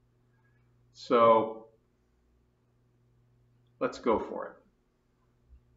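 An older man speaks calmly and briefly, close by.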